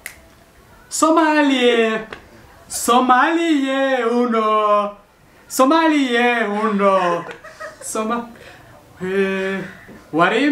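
A young man sings loudly and off-key.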